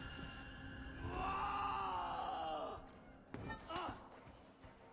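A man screams in agony.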